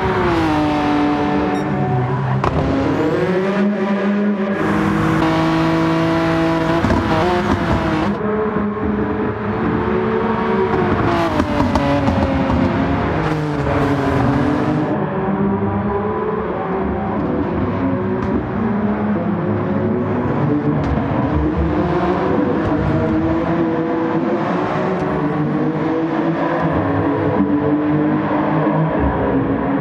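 A racing car engine roars, rising and falling in pitch as it shifts gears.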